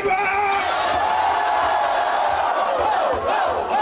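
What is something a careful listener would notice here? A crowd cheers outdoors.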